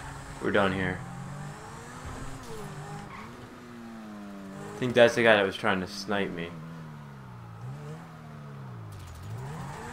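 A car engine revs and rises and falls in pitch as the car drives off.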